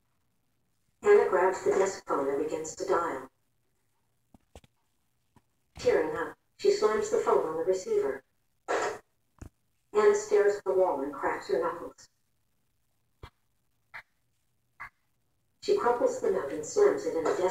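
A young woman speaks quietly and haltingly into a phone.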